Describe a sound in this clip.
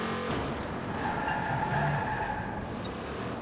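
Tyres screech as a car skids around a corner.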